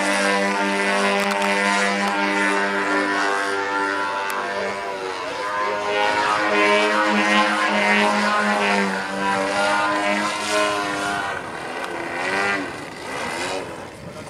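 A model airplane engine drones overhead, its pitch rising and falling as it loops and passes.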